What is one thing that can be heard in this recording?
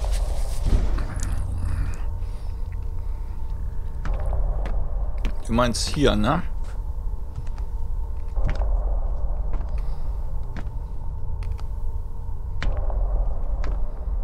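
A young woman speaks quietly into a close microphone.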